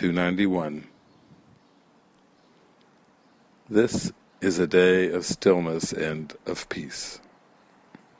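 An older man speaks calmly and closely into a microphone, with pauses.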